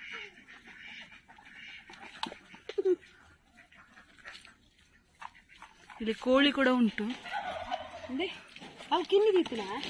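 A chicken clucks softly nearby.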